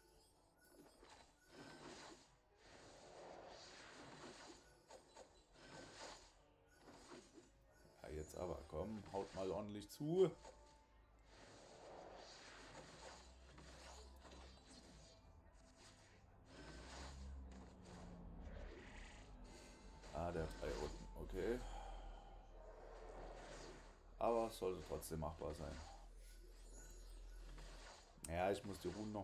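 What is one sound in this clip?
Magical blasts and whooshes burst in quick succession.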